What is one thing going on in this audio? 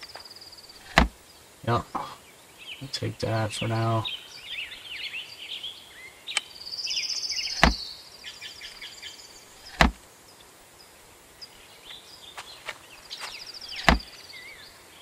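Cabinet doors knock open and shut with sharp clicks.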